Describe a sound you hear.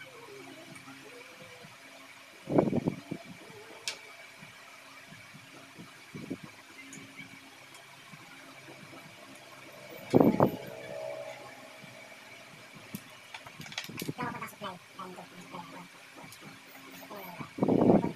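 Wires and small parts click and rustle as they are handled.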